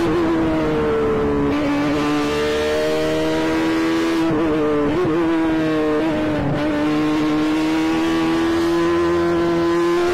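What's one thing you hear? A racing car engine screams at high revs, dipping and rising as it shifts gears.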